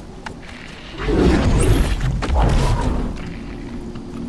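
A loud rushing blast bursts out and fades.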